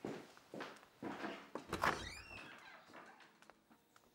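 A door closes.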